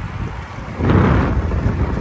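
Bicycle tyres roll over a gravel road.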